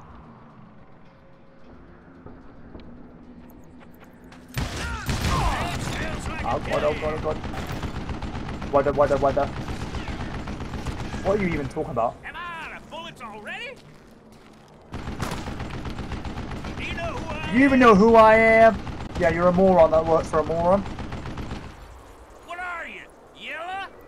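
Revolver shots ring out in bursts.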